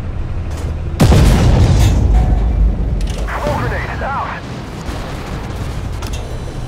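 Shells explode nearby with heavy blasts.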